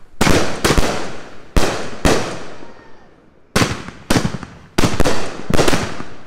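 Firework sparks crackle and fizzle after each burst.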